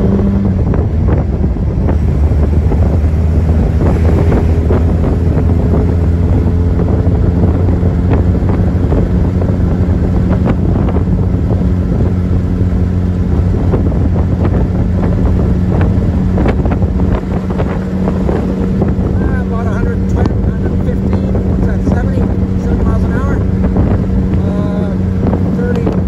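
Wind rushes past in the open air.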